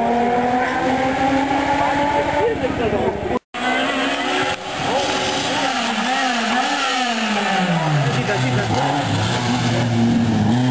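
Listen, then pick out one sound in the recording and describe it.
A rally car engine roars and revs, changing pitch as the car approaches.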